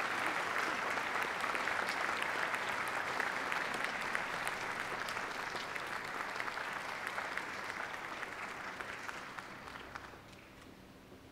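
An audience applauds and cheers in a large hall, slowly fading.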